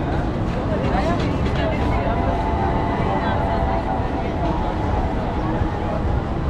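A crowd of people chatter outdoors on a busy street.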